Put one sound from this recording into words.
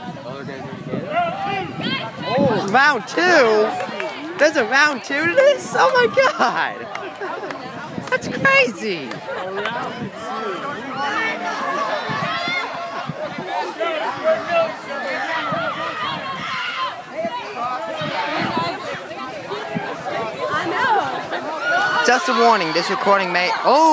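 Young women nearby cheer and shriek with excitement.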